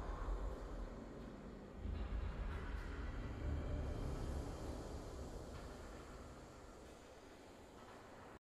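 A triumphant game victory fanfare swells and slowly fades.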